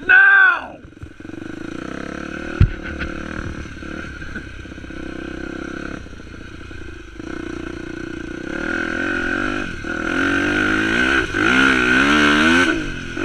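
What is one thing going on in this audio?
Tyres crunch over loose gravel and dirt.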